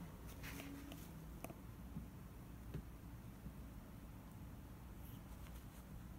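A cat crinkles a paper napkin softly.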